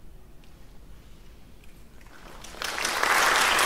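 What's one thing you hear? A concert band plays softly in a large hall.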